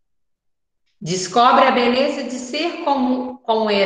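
A young woman reads aloud over an online call.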